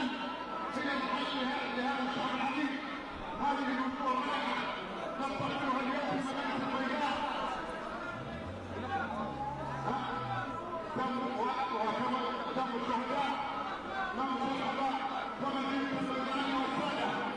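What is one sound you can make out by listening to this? A large crowd of men and women sings together outdoors.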